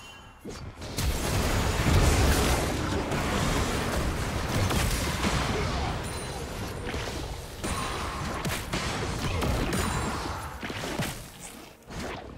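Game spell effects and weapon hits clash and burst in a busy fight.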